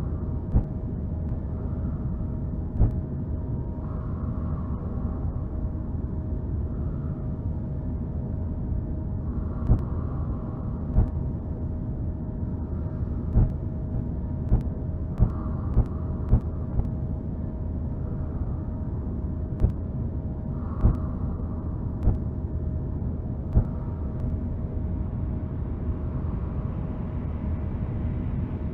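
A spaceship's engines hum with a low, steady rumble.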